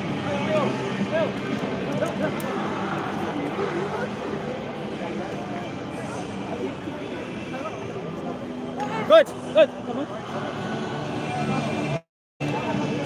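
A crowd of men chatter and call out nearby outdoors.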